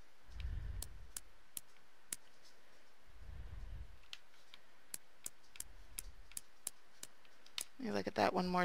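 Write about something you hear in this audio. The dials of a combination padlock click as they turn.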